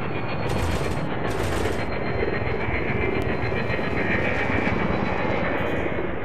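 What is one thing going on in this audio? A spacecraft engine hums and rumbles steadily.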